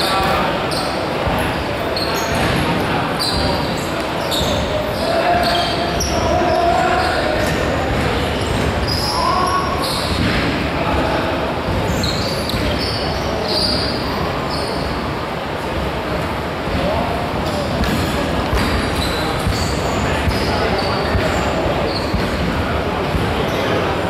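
Players call out and chatter in a large echoing hall.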